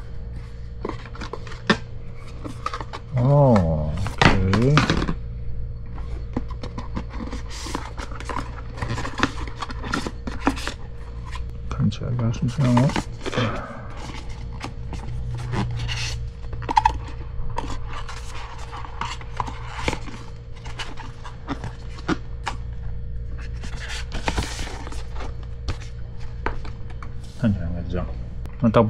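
Paper pieces rustle and tap as they are handled and fitted together.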